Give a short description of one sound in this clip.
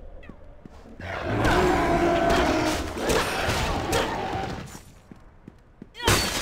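Weapons slash and strike in a fast fight.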